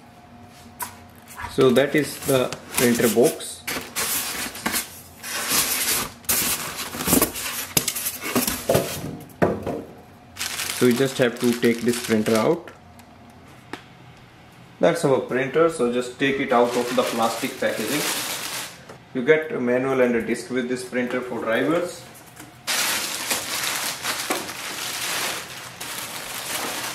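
Plastic wrap rustles and crinkles as hands handle it.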